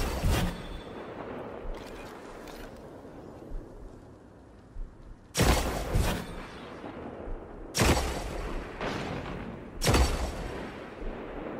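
Loud rifle shots boom and echo, one every few seconds.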